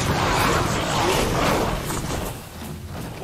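Weapons clash and crackle in a noisy battle.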